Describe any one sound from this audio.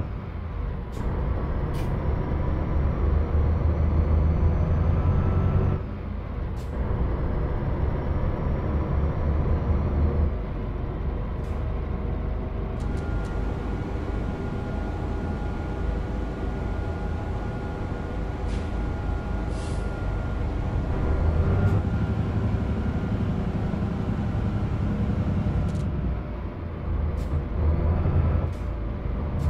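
A truck engine hums and rumbles steadily while driving.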